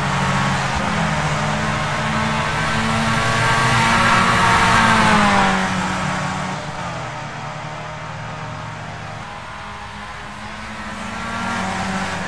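Racing car engines whine loudly, rising and falling in pitch as cars pass.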